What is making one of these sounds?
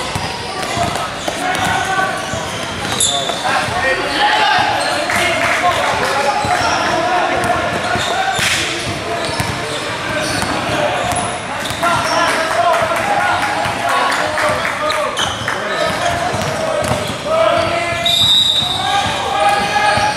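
Boys shout and call out in an echoing gym.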